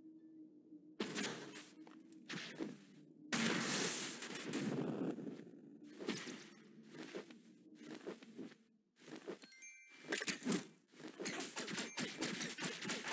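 Wings beat and whoosh in quick bursts.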